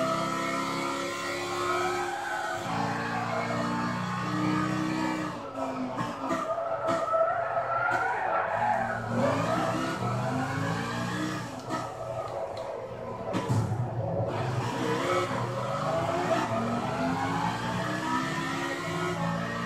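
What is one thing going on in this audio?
A race car engine roars and whines, rising and falling in pitch as the car shifts gears and brakes.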